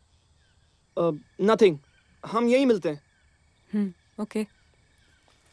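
A young man speaks quietly and tensely, close by.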